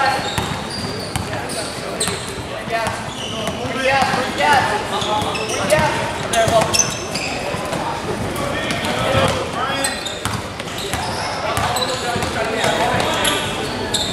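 A basketball bounces on a gym floor as it is dribbled.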